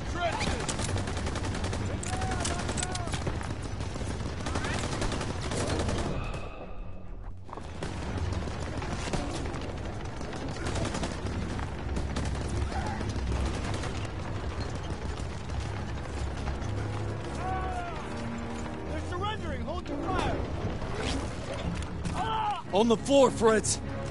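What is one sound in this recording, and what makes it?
Explosions rumble low in the distance.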